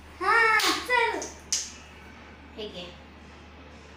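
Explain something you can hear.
A young girl exclaims in a high, excited voice close by.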